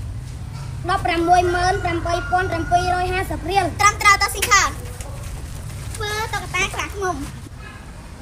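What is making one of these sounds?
A young boy speaks loudly and clearly nearby.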